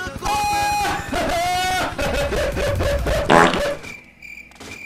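A young man laughs loudly and excitedly into a microphone close by.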